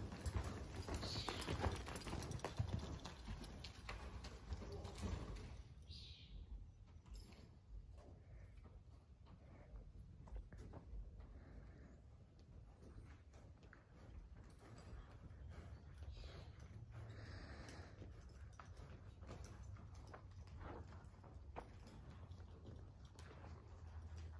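A horse's hooves thud on soft dirt, close at first and then farther off.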